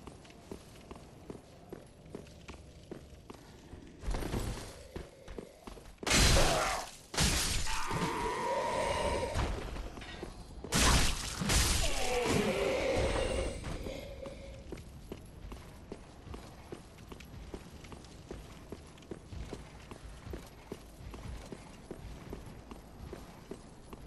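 Armoured footsteps tread steadily on stone.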